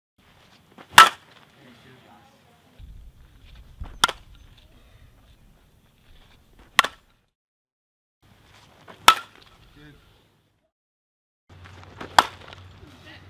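A softball bat cracks against a ball.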